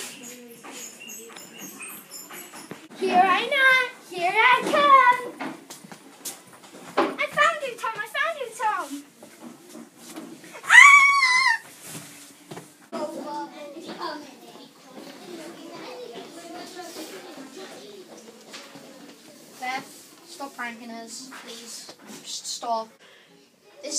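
Footsteps patter on a hard floor.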